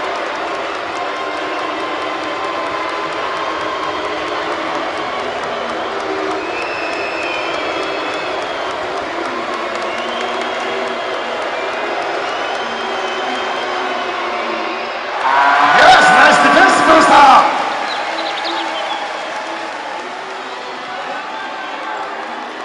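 A large indoor crowd murmurs and chatters, echoing through an arena.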